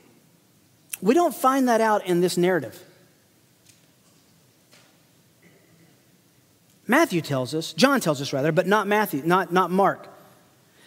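A middle-aged man speaks with emphasis through a microphone, in pauses.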